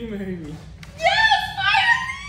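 A young woman squeals with high-pitched delight.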